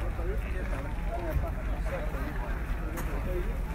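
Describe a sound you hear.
Sheep munch on grass close by.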